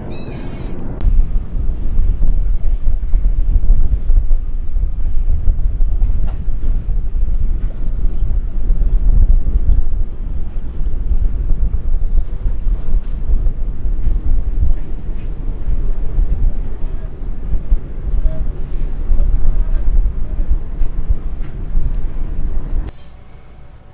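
Strong wind rumbles across the microphone outdoors on open water.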